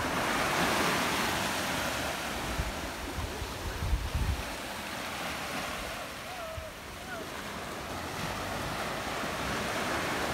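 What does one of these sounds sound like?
Small waves wash onto a sandy shore and break gently.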